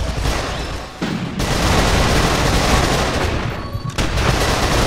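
Gunfire and explosions boom loudly from a video game.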